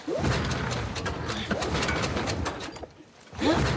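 A starter cord is yanked hard several times.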